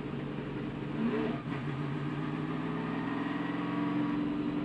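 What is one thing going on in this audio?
A race car engine dips at a gear change and then revs higher.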